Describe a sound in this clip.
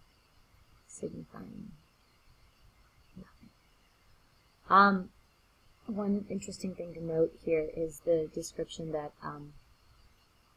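A young woman speaks expressively, close to a microphone, as if reciting.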